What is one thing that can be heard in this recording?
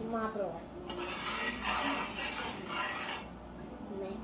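A spoon scrapes and stirs in a metal pan.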